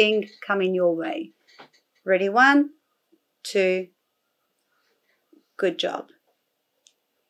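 A woman speaks calmly in short phrases close by.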